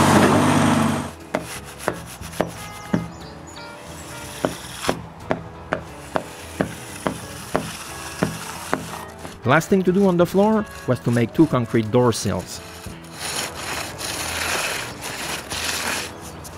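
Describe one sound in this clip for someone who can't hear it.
A trowel scrapes and slaps across wet concrete.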